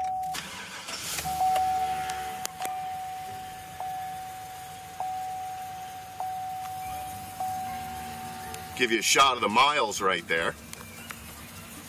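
A car engine idles with a low hum.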